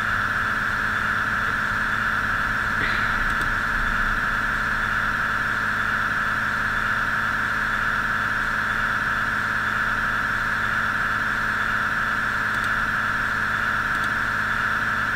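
A train engine hums steadily as the train rolls along the tracks.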